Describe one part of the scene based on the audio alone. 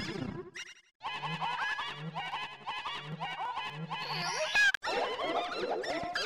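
Cheerful video game music plays with bouncy notes.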